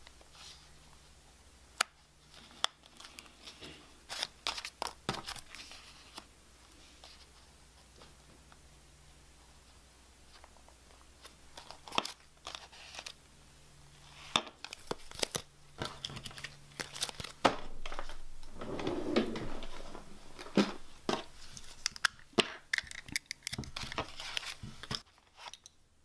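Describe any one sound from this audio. Paper rustles and crinkles as it is handled up close.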